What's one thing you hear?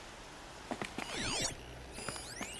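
A shimmering electronic whoosh sweeps up and down.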